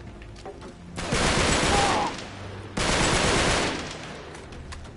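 Gunfire roars in long bursts.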